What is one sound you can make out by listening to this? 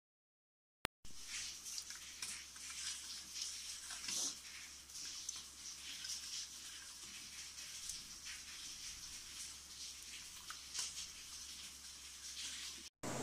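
A metal ladle stirs and splashes liquid in a steel pot.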